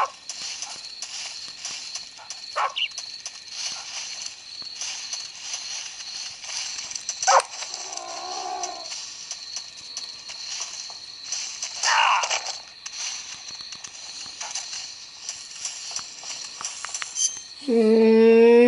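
Eerie game sounds play through a small tinny speaker.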